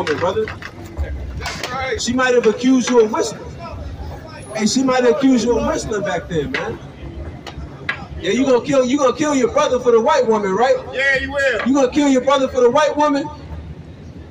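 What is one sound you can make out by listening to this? A young man raps rhythmically into a microphone, heard through a loudspeaker outdoors.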